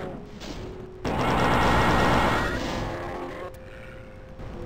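A loud energy weapon blast roars and fades.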